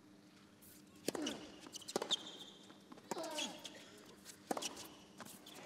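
Tennis balls are struck sharply back and forth with rackets.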